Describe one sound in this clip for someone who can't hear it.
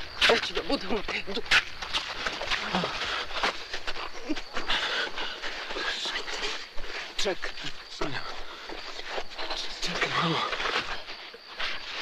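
A man groans and pants in distress close by.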